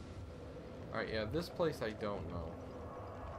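A fire bursts into flame with a whoosh.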